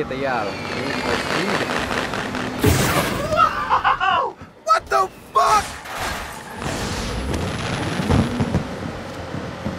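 Fireworks burst and crackle overhead.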